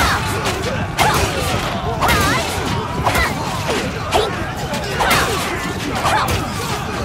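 Many fighters shout and cry out in battle.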